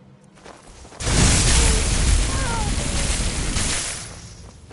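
Electric magic crackles and roars loudly.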